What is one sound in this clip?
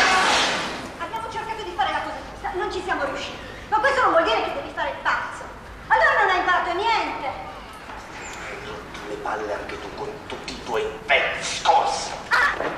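A young man speaks forcefully through a small loudspeaker.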